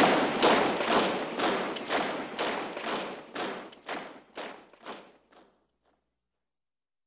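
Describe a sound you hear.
Many soldiers stamp their feet in a steady rhythm that slowly fades away.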